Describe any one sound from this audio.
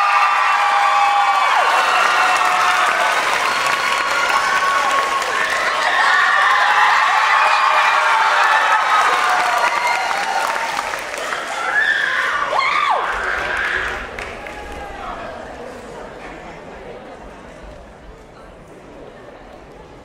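A crowd cheers and screams loudly in a large hall, then fades away.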